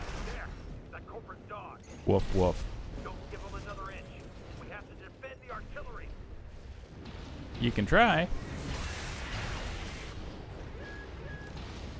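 Heavy guns fire in bursts.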